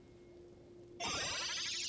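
A bright electronic chime rings out from a video game.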